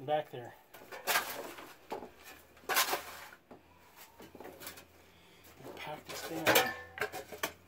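A shovel scrapes and digs into dirt and wood chips.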